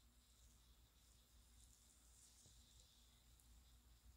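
A sheet mask peels off skin with a soft rustle.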